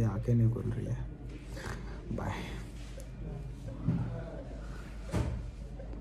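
A young man speaks weakly and slowly, close by.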